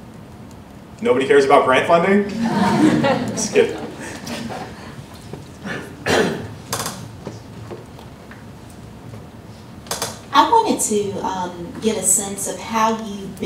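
A man speaks calmly into a microphone, heard over loudspeakers in a large room.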